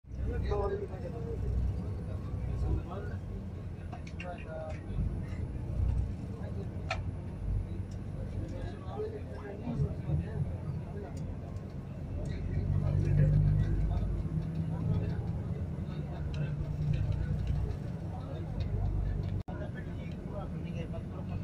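A vehicle engine rumbles low and steady from inside a moving vehicle.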